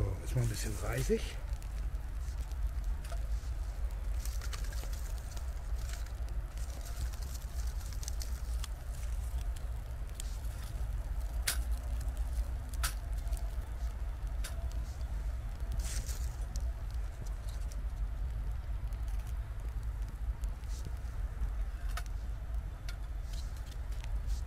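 A fire crackles and pops with sharp snaps.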